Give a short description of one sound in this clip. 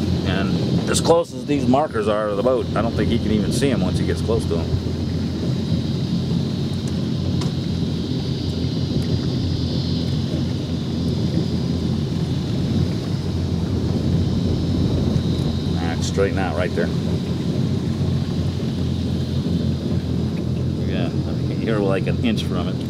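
A boat engine idles with a steady low rumble.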